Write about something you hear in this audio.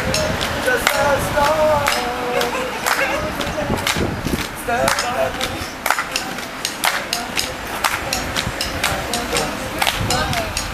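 A group of young men and women clap their hands in rhythm outdoors.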